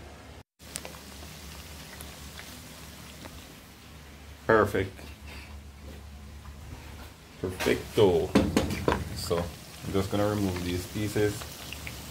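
Food sizzles gently in hot oil in a pan.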